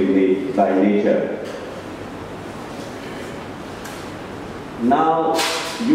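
A man speaks into a microphone over a loudspeaker in a large echoing hall.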